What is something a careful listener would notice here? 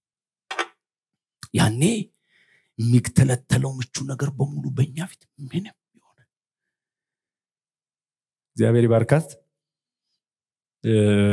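A man preaches with animation through a microphone and loudspeakers, in a large echoing hall.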